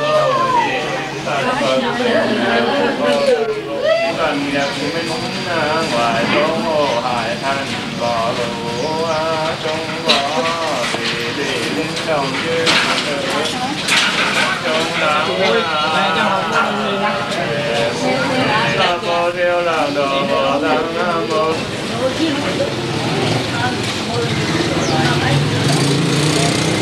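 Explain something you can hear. A group of voices chants a prayer in a slow, wavering tune.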